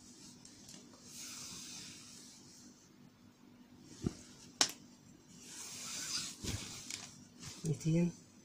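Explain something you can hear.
Fabric rustles and crinkles as it is handled close by.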